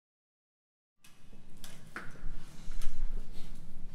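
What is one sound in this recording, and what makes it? A women's choir sings in a reverberant room.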